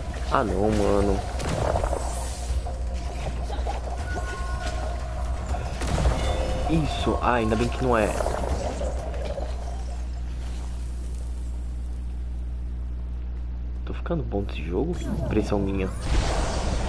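A young man talks into a headset microphone with animation, close up.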